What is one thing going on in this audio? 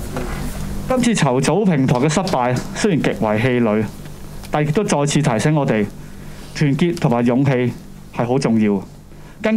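A young man speaks in a subdued voice into microphones, heard up close.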